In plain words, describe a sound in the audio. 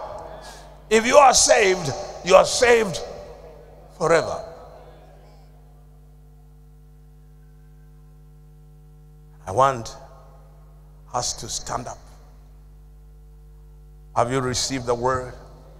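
An older man preaches with animation into a microphone, in bursts with long pauses, in a large echoing hall.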